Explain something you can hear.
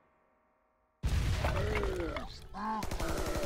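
A wall bursts apart with a loud crash.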